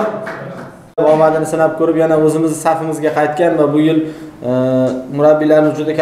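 A man speaks through a microphone, echoing in a large room.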